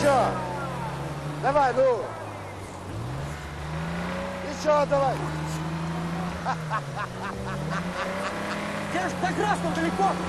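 A truck engine revs and strains, rising and falling.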